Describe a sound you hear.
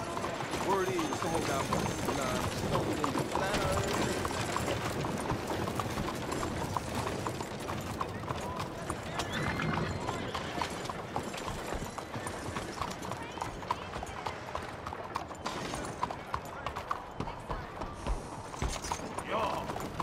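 Horse hooves clop steadily on a cobbled street.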